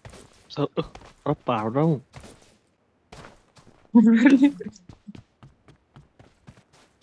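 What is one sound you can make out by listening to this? Footsteps crunch steadily over snow.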